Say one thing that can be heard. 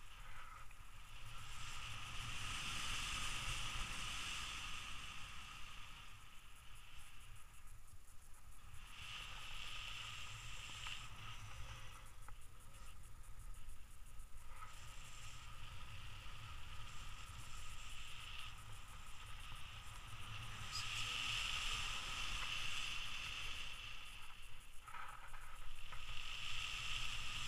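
Wind rushes and buffets steadily past outdoors.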